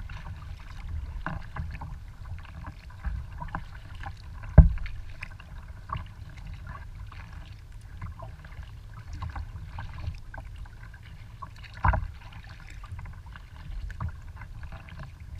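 Small waves lap and splash against a kayak's hull.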